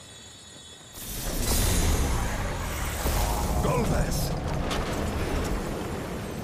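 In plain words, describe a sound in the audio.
A magic blast bursts with a deep, roaring rumble.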